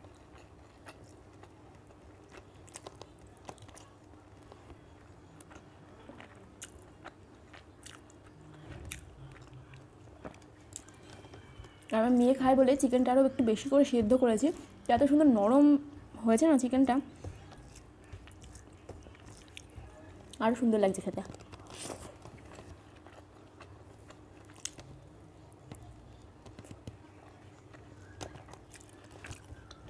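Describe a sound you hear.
Fingers scrape and squelch through rice and curry on a metal plate.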